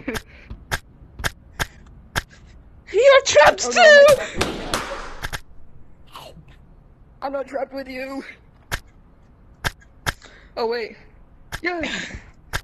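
A toy slingshot snaps sharply as it fires, again and again.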